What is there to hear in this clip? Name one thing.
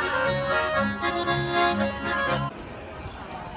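Accordions and a double bass play a lively folk tune.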